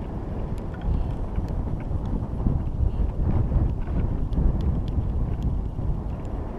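Wind rumbles in low gusts outdoors.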